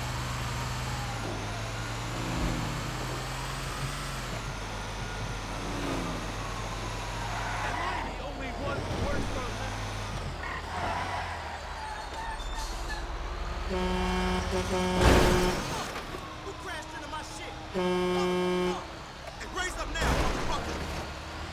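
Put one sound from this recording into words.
A fire truck engine rumbles steadily as it drives.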